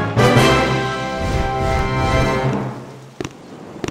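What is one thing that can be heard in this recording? A short triumphant musical fanfare plays.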